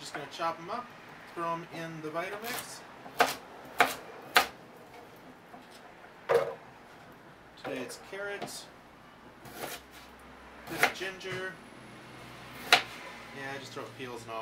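A knife chops on a wooden cutting board.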